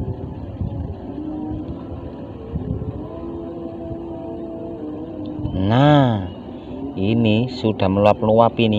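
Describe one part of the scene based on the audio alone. Water splashes softly as a hand dips into shallow water.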